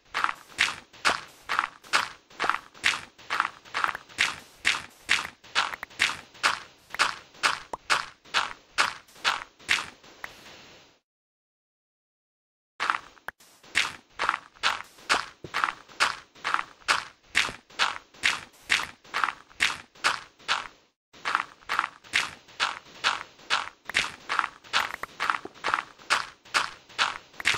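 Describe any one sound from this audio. A shovel digs rapidly into sand with quick, rhythmic crunching scrapes.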